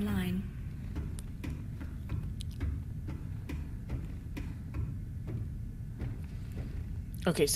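Footsteps clank on metal ladder rungs.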